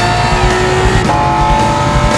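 A racing car engine's pitch drops sharply as a gear shifts.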